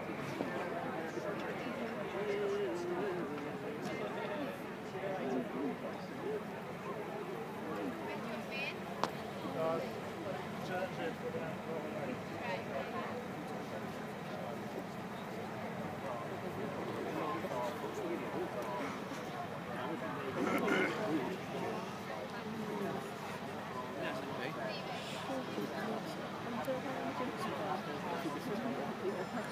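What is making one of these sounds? A crowd of spectators murmurs and chatters outdoors at a distance.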